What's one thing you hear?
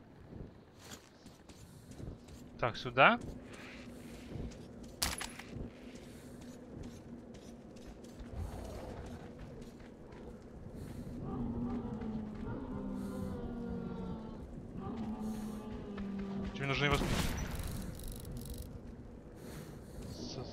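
Footsteps crunch over debris.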